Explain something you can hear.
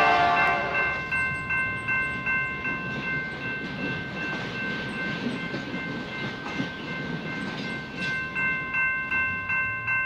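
Train wheels clack rhythmically over rail joints.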